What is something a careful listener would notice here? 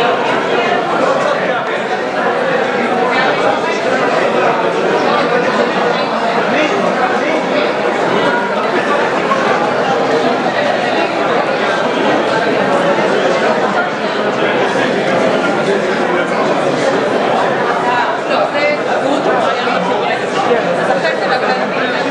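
A large crowd of men and women chatters all at once in an echoing hall.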